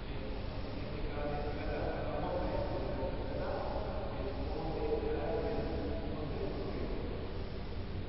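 Men talk quietly at a distance in an echoing hall.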